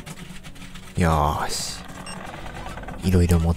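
A loud electronic chime sounds twice.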